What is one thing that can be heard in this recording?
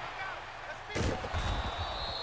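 Football players collide with a heavy thud.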